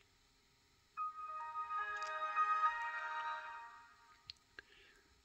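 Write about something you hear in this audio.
A laptop plays a short startup chime through small speakers.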